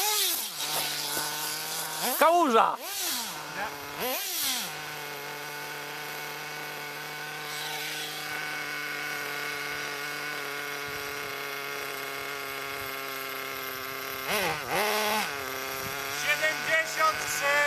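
A small remote-control car motor whines steadily, revving up and down in bursts.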